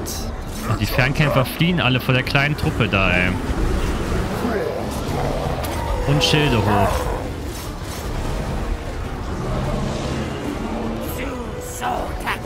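A battle rages with a dense din of clashing fighters and roaring creatures.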